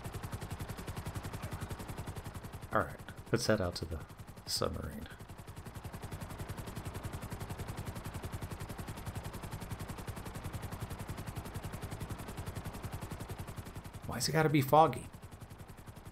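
A helicopter's rotor chops steadily close by.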